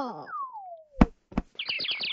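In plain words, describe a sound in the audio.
A cartoon cat lands with a thud.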